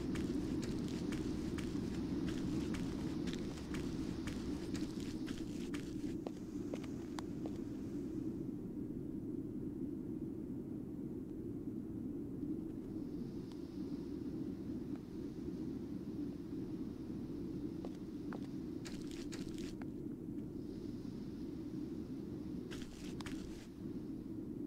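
Footsteps tread over soft grass.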